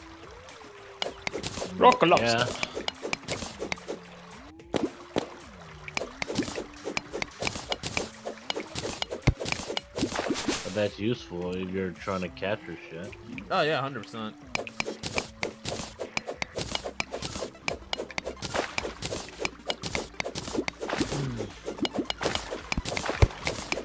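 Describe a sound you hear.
A pickaxe chips at stone with rapid, repeated clicks.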